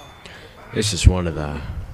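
A blow lands with a dull thud.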